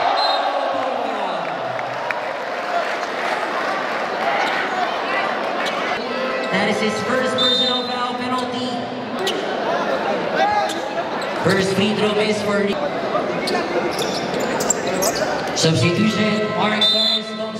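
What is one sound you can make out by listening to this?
A large crowd cheers and chatters in a big echoing gym.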